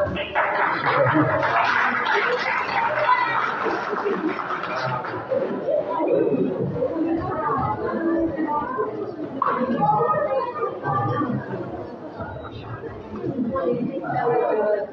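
A keyboard plays music through loudspeakers.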